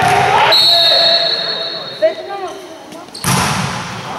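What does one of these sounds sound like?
A volleyball is struck hard and smacks in an echoing hall.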